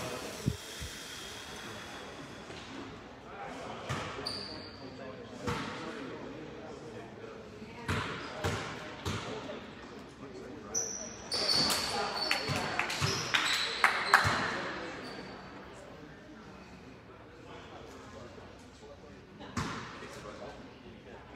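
Spectators murmur and cheer in an echoing gym.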